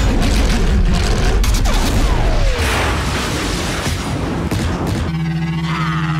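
Racing engines roar loudly as they speed past.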